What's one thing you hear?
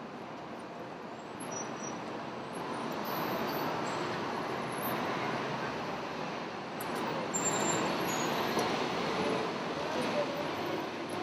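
Steady city traffic rumbles along a street.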